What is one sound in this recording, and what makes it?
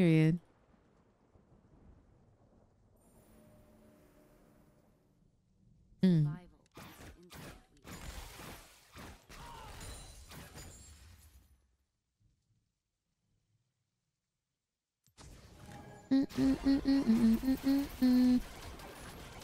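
A young woman talks with animation into a nearby microphone.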